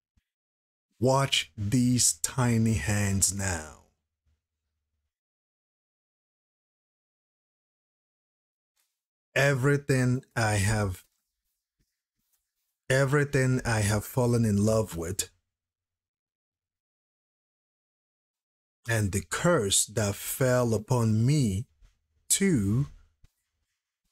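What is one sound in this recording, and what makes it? A man talks into a close microphone, calmly and in short bursts.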